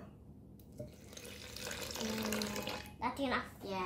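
Water pours from a bottle into a jug.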